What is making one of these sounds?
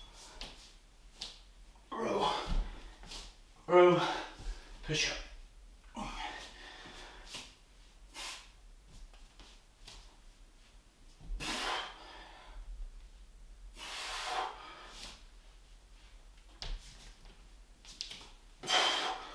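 A man breathes hard with effort.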